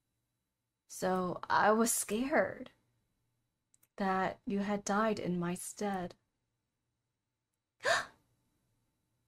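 A young woman reads aloud with expression close to a microphone.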